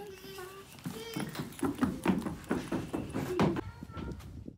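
Small feet run on wooden boards.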